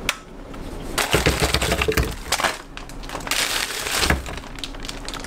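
Frozen fruit tumbles and clatters into a plastic blender jar.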